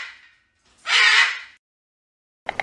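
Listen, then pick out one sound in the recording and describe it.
A macaw gives a harsh screech.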